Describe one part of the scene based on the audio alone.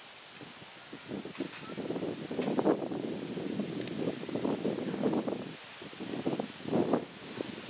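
An elephant pushes through tall grass, stems rustling and snapping.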